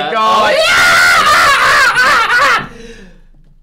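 A young man screams loudly and shrilly up close.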